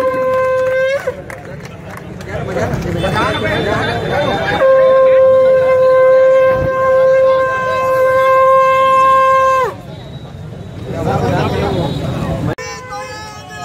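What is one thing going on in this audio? A crowd of men and women talk and shout nearby.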